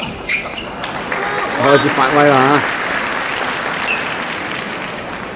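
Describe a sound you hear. A crowd applauds in a large echoing hall.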